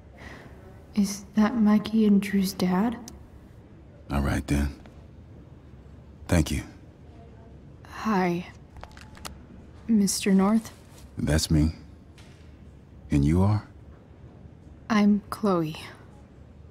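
A young woman speaks calmly and hesitantly nearby.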